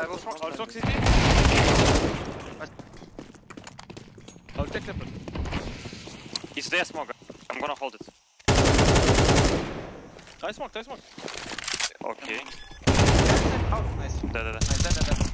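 A rifle fires loud rapid bursts of gunshots.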